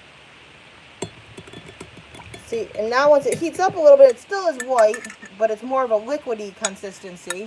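A spoon clinks against a glass measuring cup.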